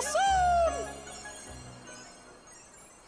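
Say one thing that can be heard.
A sparkling magical chime rings out and fades.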